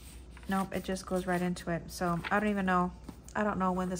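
A book closes with a soft thump.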